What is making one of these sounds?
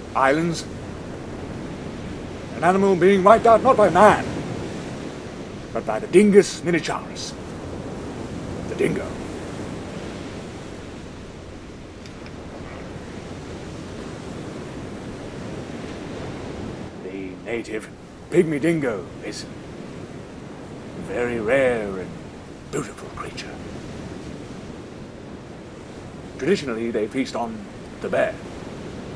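A young man talks with animation, close by outdoors.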